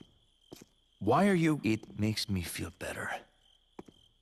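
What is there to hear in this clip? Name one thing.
A young man speaks with surprise, close by.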